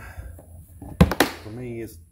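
Hard plastic clicks sharply.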